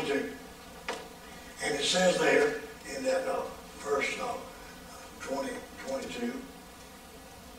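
An elderly man speaks slowly and calmly through a microphone.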